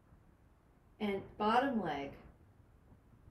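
A woman speaks briefly and calmly, close by.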